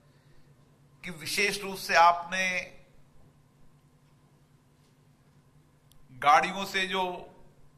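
A middle-aged man speaks with animation into a microphone over a loudspeaker system.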